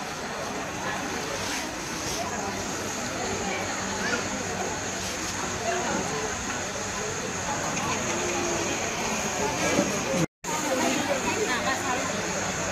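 A crowd of women chatter and call out outdoors.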